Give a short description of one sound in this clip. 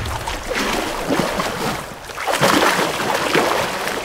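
Water splashes underfoot as someone wades through a shallow stream.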